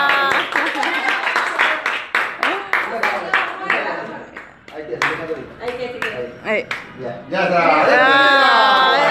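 A group of people sing together close by.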